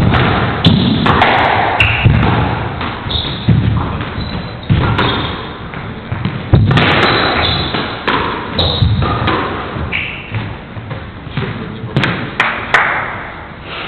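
A squash ball smacks sharply off the walls during a fast rally, echoing in a hard-walled court.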